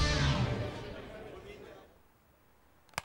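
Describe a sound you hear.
A rock band plays loudly and quickly fades out.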